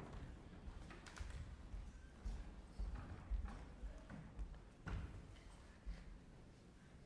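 Footsteps tap on a wooden stage floor in a large echoing hall.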